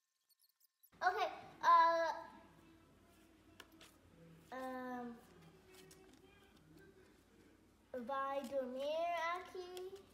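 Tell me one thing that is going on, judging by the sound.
Young children talk and exclaim nearby.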